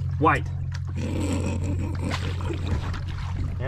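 Water splashes against a boat's side.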